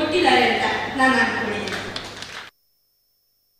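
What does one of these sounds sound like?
A woman speaks with animation into a microphone, heard through loudspeakers.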